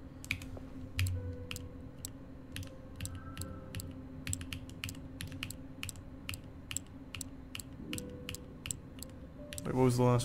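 A combination lock's dials click as they turn.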